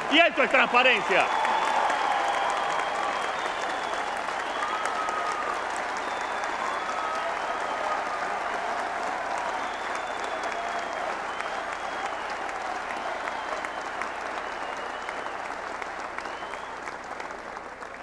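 A large crowd applauds and cheers loudly.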